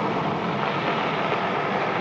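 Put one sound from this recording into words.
A car engine hums as the car rolls over the ground.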